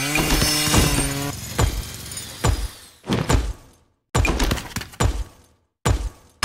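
Short game chimes and clicks sound in quick bursts.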